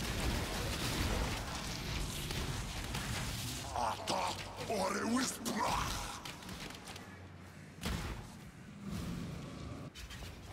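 Crackling lightning spell effects burst and zap in a video game.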